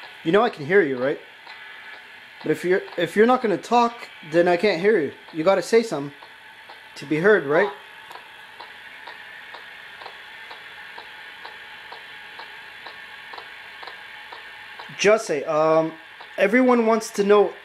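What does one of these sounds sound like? A young man speaks with animation through a small loudspeaker, in short bursts with pauses.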